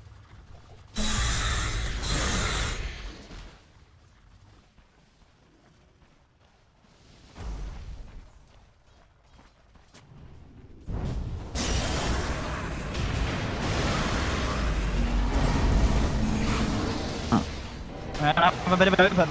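Magic spells whoosh and clash.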